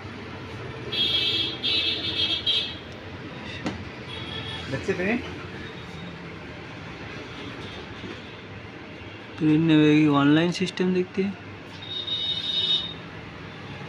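A touchscreen beeps in short bursts.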